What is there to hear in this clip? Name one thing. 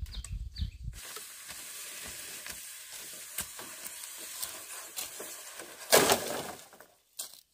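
A long bamboo pole drags over dry ground.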